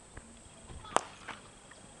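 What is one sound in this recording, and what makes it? A bat sharply strikes a ball.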